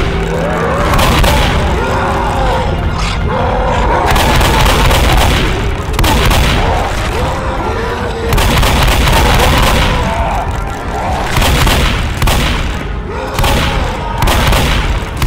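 A large monster roars and growls.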